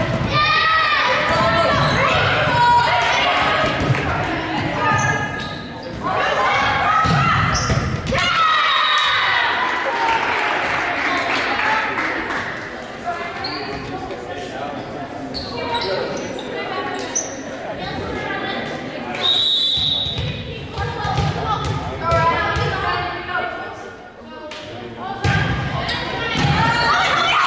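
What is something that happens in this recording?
Young women shout and call out across an echoing gym.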